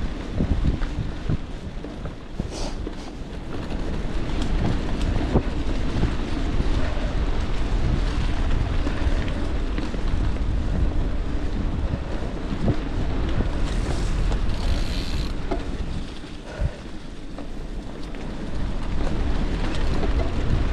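Bicycle tyres roll and crunch over a rough dirt trail.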